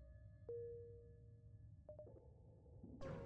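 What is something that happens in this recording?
Short electronic blips sound as a menu opens and closes.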